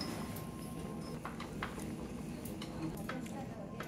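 A pot of stew bubbles and simmers.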